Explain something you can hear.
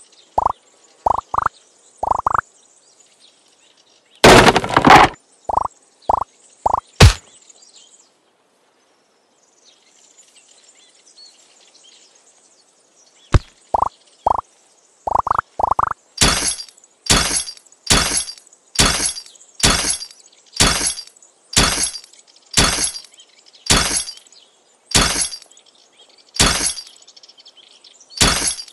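Short rising electronic blips and bursts of game sound effects play from a tablet.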